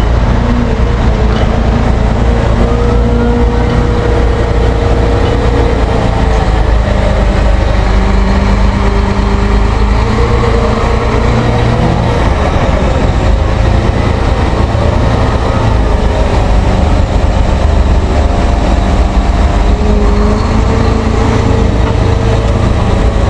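A diesel wheel loader drives away over gravel.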